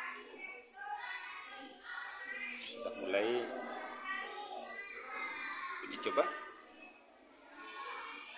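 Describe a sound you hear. A young girl speaks quietly nearby.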